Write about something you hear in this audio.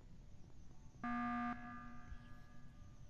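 A game alarm sound blares briefly.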